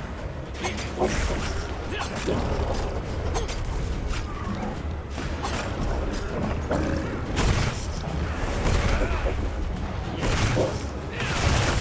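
A huge beast roars and growls.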